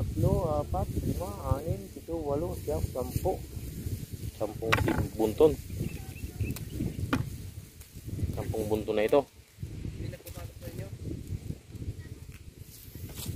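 Dry plants rustle as they are handled.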